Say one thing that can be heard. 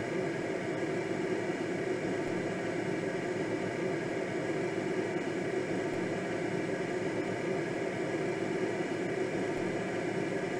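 Wind rushes steadily past a glider's cockpit.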